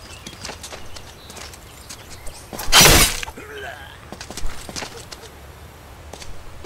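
Swords swish through the air.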